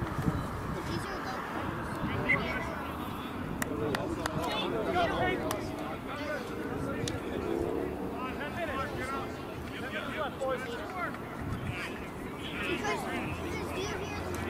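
Men shout and call out to each other across an open field outdoors.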